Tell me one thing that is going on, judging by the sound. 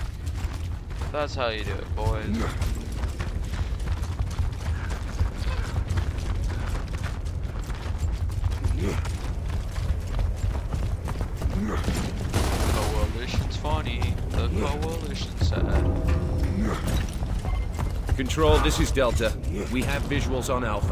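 A young man talks casually into a headset microphone.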